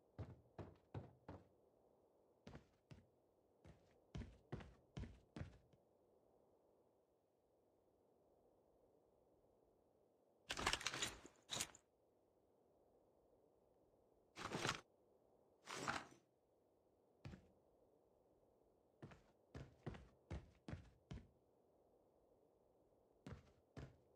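Footsteps tap on a hard floor at a steady walking pace.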